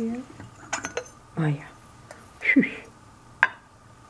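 A porcelain lid clinks against a teapot.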